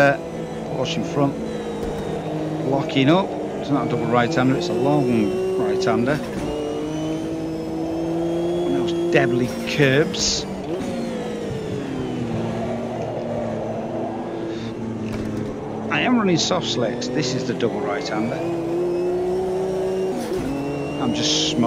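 A racing car engine roars, revving up and down through gear changes.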